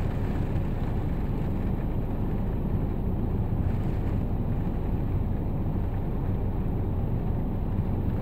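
A flag flaps in the wind.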